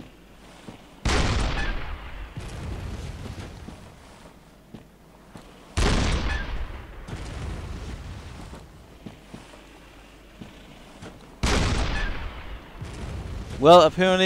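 A cannon fires with loud booms that rumble away.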